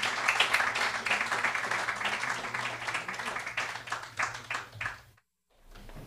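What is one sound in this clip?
Many people chatter at once in a room.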